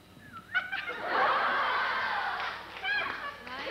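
A crowd of young women laughs and cheers loudly in a large hall.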